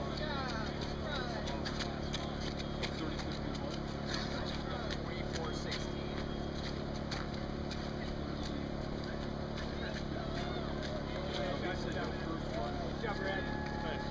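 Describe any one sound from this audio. Runners' footsteps patter on wet pavement.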